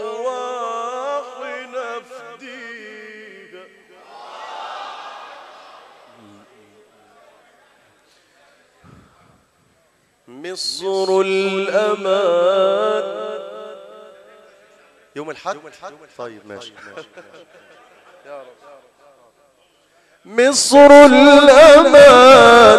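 A man chants in a drawn-out, melodic voice through a loudspeaker in a large echoing hall.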